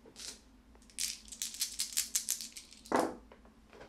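Dice rattle in a cupped hand.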